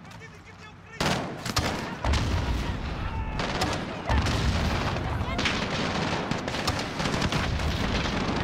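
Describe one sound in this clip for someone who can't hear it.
Explosions boom loudly, one after another.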